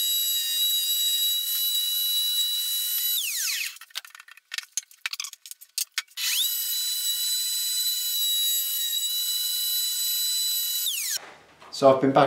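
A router whines at high speed and winds down.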